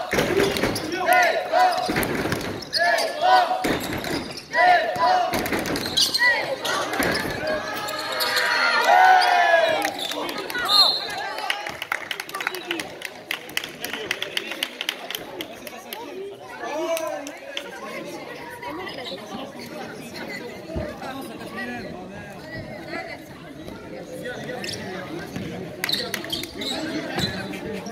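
A basketball thuds on a wooden floor.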